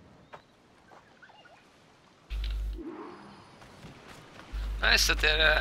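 Footsteps crunch softly on sand and grass.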